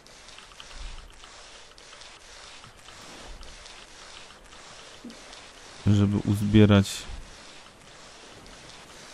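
A wet mop scrubs across a hard floor.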